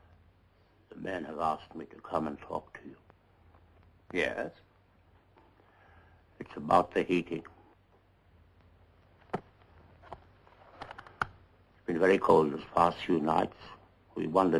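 An elderly man speaks firmly with a raised voice.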